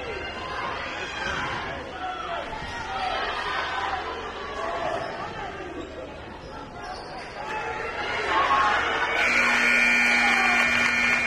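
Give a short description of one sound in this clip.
A crowd cheers in a large echoing gym.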